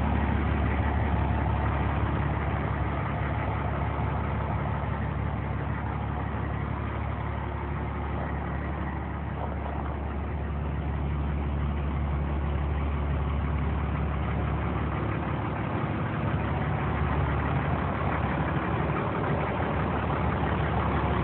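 A large diesel engine idles with a steady low rumble nearby.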